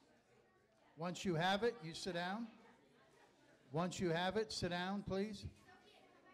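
A man speaks loudly through a microphone.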